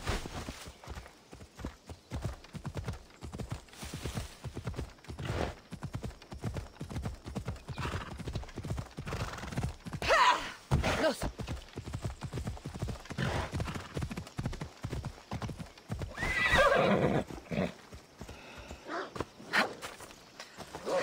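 A horse gallops with quick, steady hoofbeats on the ground.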